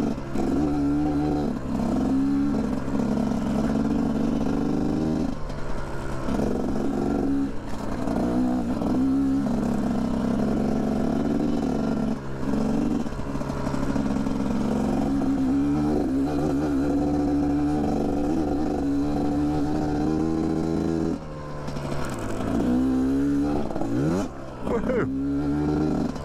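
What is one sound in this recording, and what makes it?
Tyres crunch over loose gravel and rocks.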